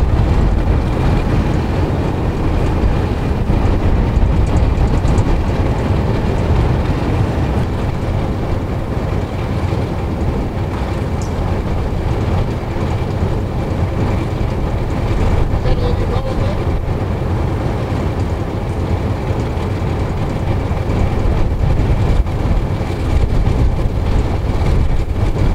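Diesel-electric locomotives idle with a deep, steady rumble.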